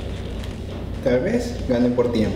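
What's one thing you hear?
A man speaks close to the microphone with animation.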